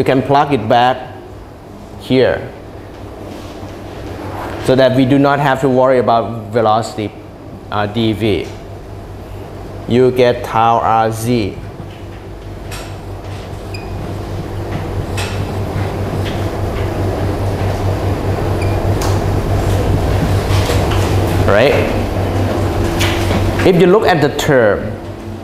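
A young man lectures calmly through a microphone in an echoing room.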